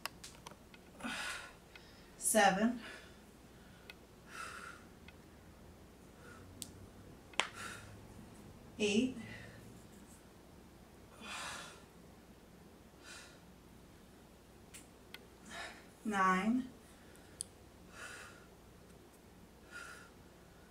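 A woman breathes out hard in rhythmic bursts.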